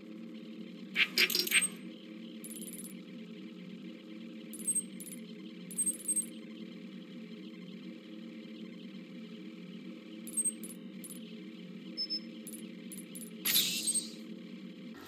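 Electronic menu sounds chirp and whoosh as a game map opens and scrolls.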